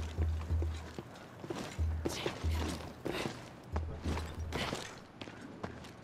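Footsteps thud quickly on wooden planks.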